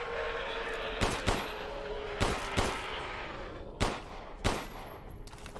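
Pistol shots ring out sharply several times.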